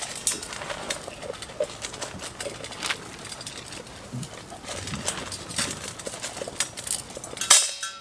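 Feed rattles in a metal cup.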